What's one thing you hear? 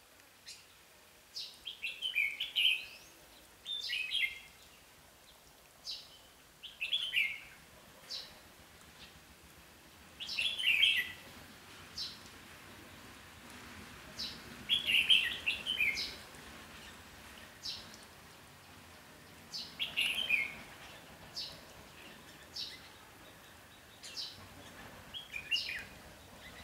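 A small bird chirps in short, repeated bursts nearby.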